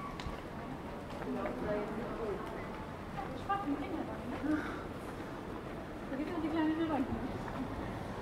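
Young women chat nearby outdoors.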